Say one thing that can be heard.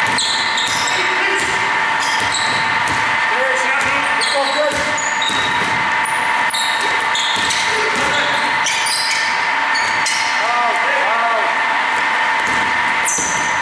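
Sneakers squeak on a hardwood court in a large echoing hall.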